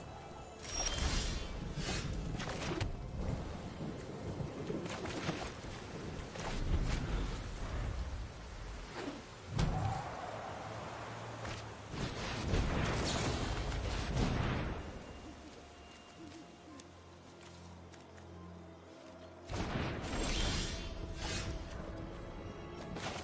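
Game music plays with magical whooshing and chiming effects.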